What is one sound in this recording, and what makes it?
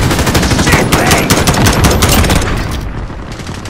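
Gunfire rattles in rapid bursts close by.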